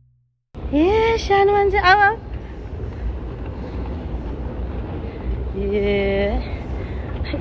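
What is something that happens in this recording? A young child calls out in a high, sing-song voice close by.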